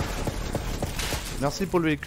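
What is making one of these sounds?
A gun fires in quick shots.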